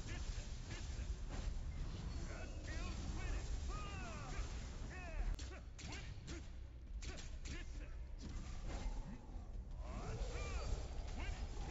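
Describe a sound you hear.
Weapon strikes and magic blasts crash again and again in a fast fight.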